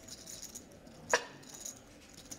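Poker chips click together.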